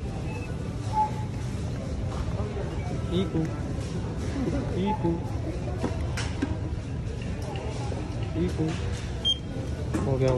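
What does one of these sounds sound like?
A barcode scanner beeps several times.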